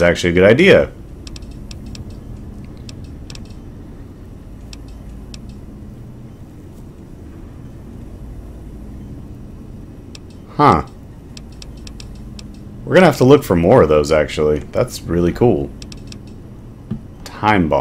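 Soft menu clicks tick as a list scrolls.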